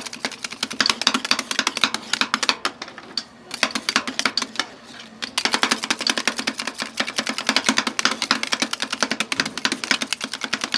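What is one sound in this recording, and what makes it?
Metal spatulas scrape and tap rapidly on a cold metal plate.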